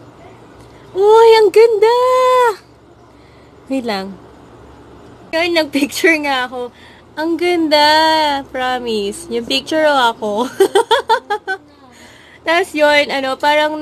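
A young woman speaks animatedly and close by.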